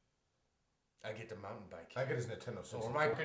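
A man speaks close by in a tense voice.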